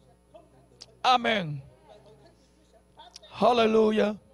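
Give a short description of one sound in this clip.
A man speaks loudly and fervently through a microphone.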